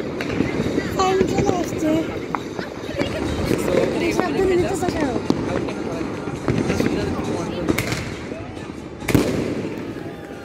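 Fireworks bang and pop far off across a city.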